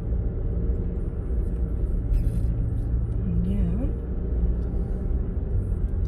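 A car engine hums steadily from inside the car as it drives along.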